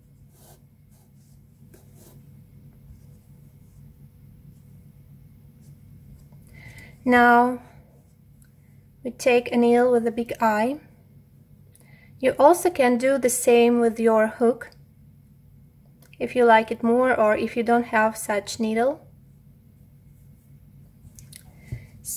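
Fabric yarn rustles softly as hands handle a crocheted basket.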